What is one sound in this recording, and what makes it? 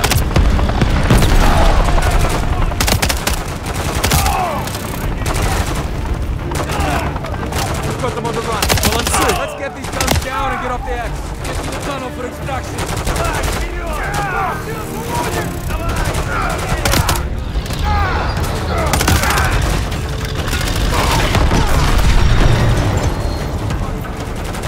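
Explosions rumble low and heavy.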